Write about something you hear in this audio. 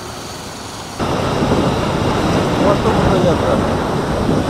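Wind rumbles loudly against a moving vehicle.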